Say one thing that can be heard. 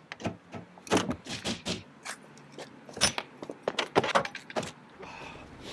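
A car door handle rattles and clicks.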